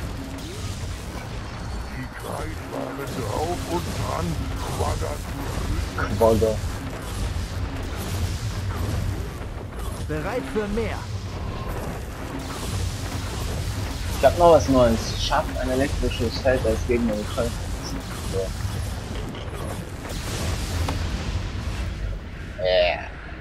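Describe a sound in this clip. Magic blasts crackle and fizz in bursts.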